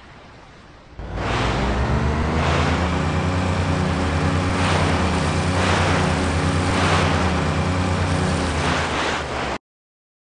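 Water splashes and churns behind a speeding boat.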